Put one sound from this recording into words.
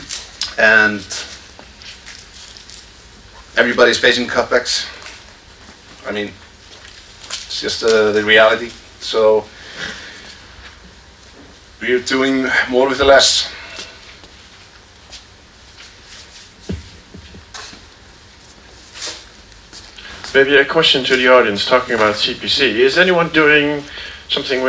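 A man speaks calmly through a microphone in a large echoing hall, with pauses.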